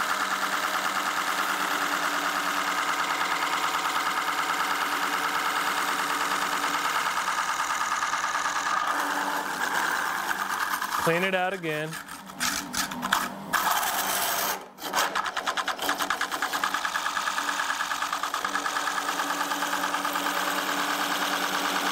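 A hollowing tool scrapes and chatters against spinning wood.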